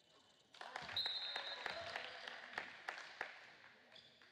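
A basketball bounces on a hard court in a large echoing gym.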